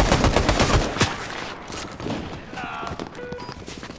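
Footsteps patter quickly on stone as a game character runs.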